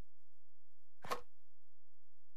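A game interface gives a short click as a window closes.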